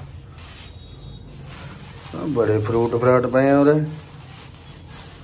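A plastic bag rustles as a hand reaches into it.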